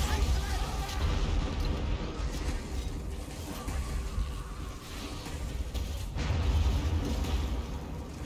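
Lightning crackles and buzzes loudly.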